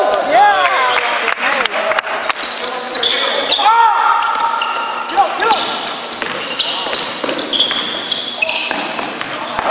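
Sneakers squeak sharply on a hard floor, echoing in a large hall.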